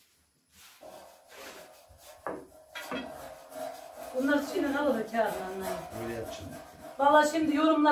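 A rolling pin thumps lightly on a wooden board.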